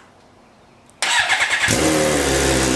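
A motorcycle engine cranks and starts.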